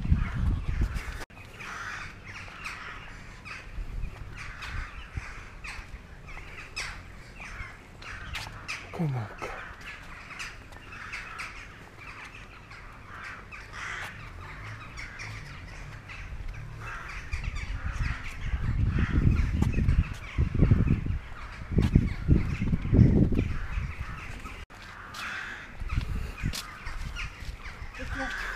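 Footsteps tap and scuff along a paved path outdoors.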